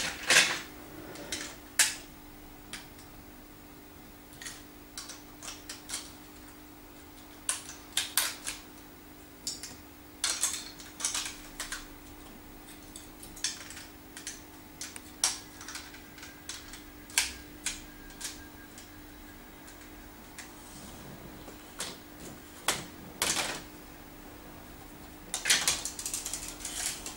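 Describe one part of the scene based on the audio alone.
Plastic building bricks click and clatter as a child snaps them together.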